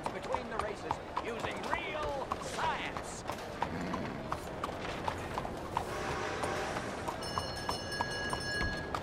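A horse's hooves clop steadily on cobblestones.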